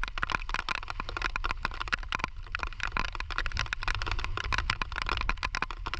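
Small crabs scrabble and click against a plastic bucket.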